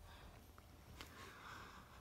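A soft plush toy rustles faintly as a hand squeezes it, up close.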